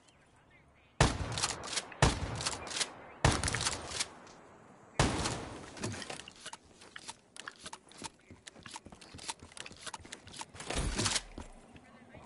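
Gunfire bursts in loud, rapid volleys.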